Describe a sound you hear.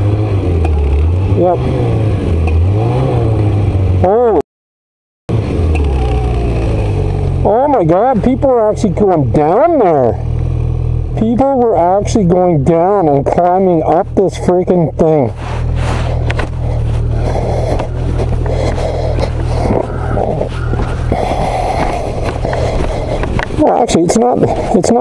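A snowmobile engine roars close by, revving up and down.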